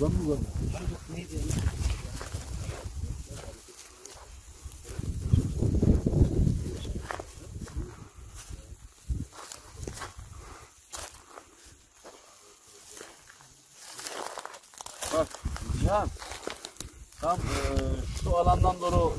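An elderly man talks calmly nearby.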